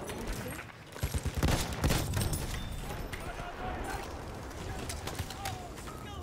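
Rifle shots crack in quick bursts.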